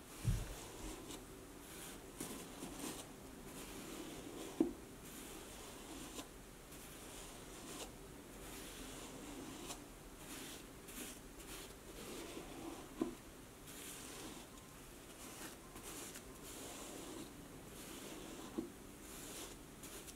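A cloth rubs and brushes against leather up close.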